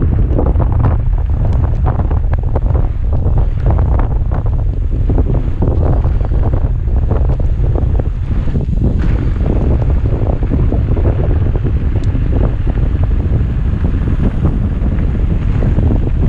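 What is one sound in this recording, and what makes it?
Wind buffets loudly against a helmet microphone.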